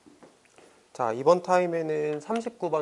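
A young man speaks clearly into a microphone, as if lecturing.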